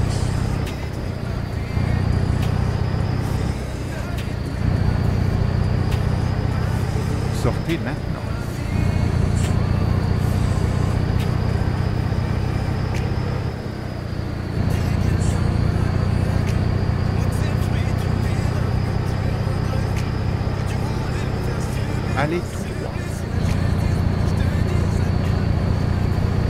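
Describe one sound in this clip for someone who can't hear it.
A truck's diesel engine hums steadily, rising and falling as the truck speeds up and slows down.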